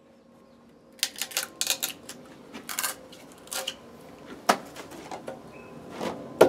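A chisel scrapes and cuts into wood.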